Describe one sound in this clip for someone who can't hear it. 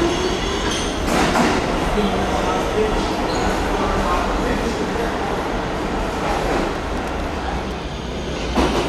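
A subway train rumbles past loudly in an echoing tunnel.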